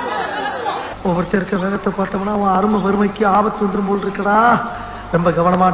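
A man speaks loudly and emphatically, close by.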